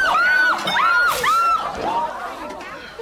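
A woman shrieks loudly in a high, wavering voice.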